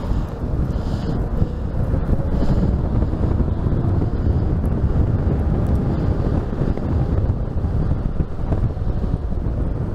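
Wind rushes loudly and steadily, as when riding fast.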